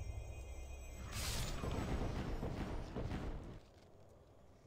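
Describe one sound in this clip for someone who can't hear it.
A magic spell bursts with a loud crackling whoosh.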